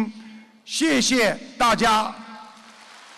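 A man speaks slowly and loudly into a microphone in a large echoing hall.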